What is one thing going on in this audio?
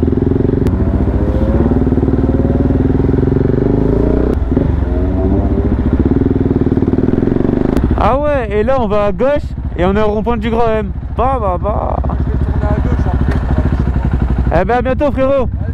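A motorcycle engine hums and revs steadily.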